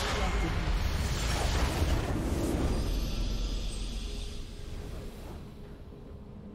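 A large magical blast booms and crackles, then slowly fades.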